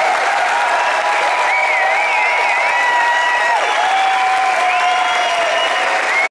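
A rock band plays loudly through large speakers outdoors.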